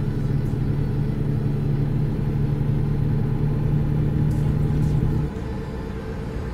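A truck engine drones steadily, then drops to a lower hum.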